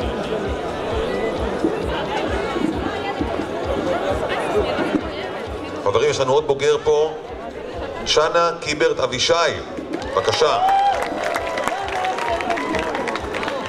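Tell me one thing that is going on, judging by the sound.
A crowd murmurs and chatters throughout.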